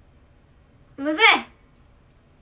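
A young woman close by makes a short rising vocal sound.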